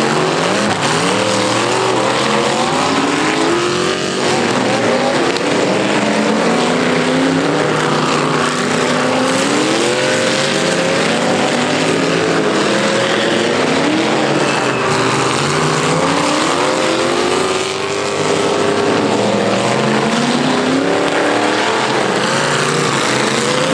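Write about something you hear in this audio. Tyres skid and spray dirt.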